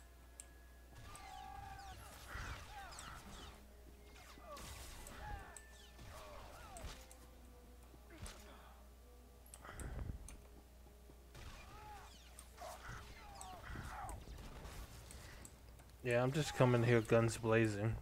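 Laser blasts zap and hum in a video game.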